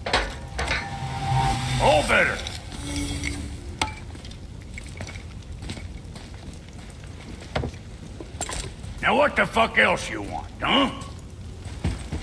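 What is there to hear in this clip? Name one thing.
A man speaks gruffly and with animation, close by.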